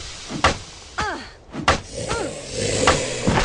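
A zombie groans and snarls.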